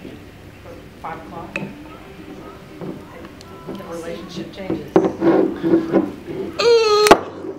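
A corkscrew twists into a wine cork with soft creaks.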